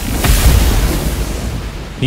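Lightning crackles.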